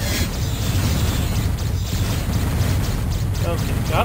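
Laser blasts fire in rapid bursts.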